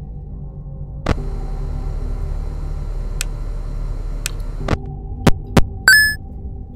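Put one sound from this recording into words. An electric desk fan whirs.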